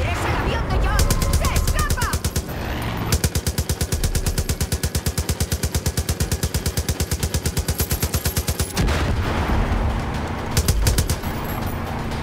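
A heavy machine gun fires rapid bursts close by.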